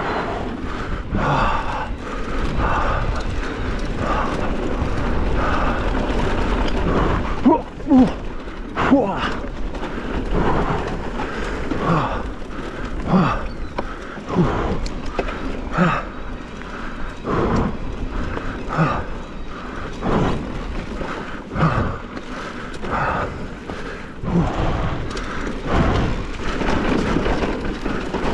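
Wind rushes past steadily outdoors.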